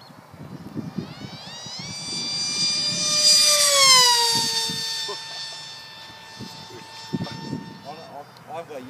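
A small model plane's engine whines overhead, rising in pitch and then dropping as it passes.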